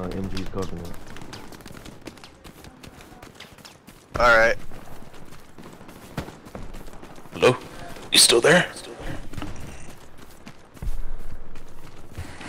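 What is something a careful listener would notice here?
Footsteps run quickly through grass and brush.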